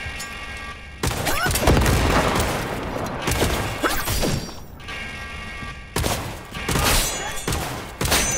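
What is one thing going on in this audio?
Gunshots fire in rapid bursts, echoing off hard walls.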